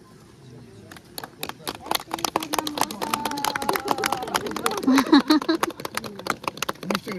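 A group of people clap their hands quickly, close by, outdoors.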